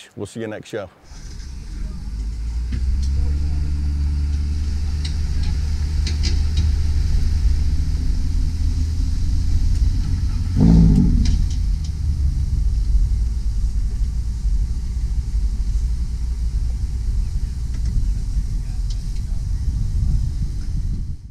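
Tyres rumble steadily along a paved road.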